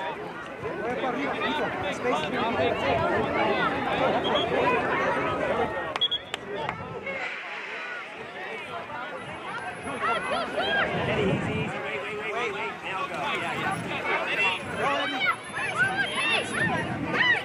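A crowd of spectators outdoors chatters and cheers.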